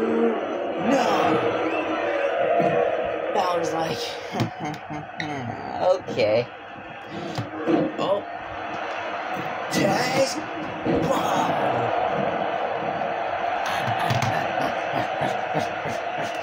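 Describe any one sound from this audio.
A crowd cheers and roars steadily through a television speaker.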